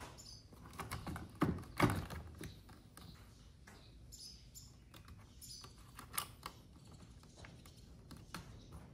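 Plastic parts click and rattle.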